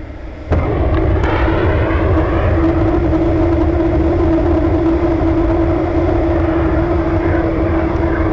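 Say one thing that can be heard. A rocket engine roars loudly and steadily with a droning hum.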